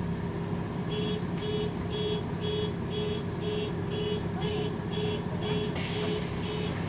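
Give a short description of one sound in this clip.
A city bus door warning chime beeps.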